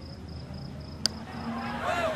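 A golf club strikes a ball with a sharp click.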